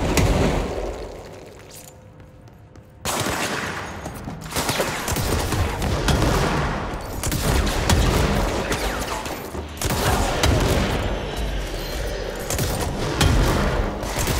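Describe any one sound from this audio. Debris crashes and shatters in loud explosions.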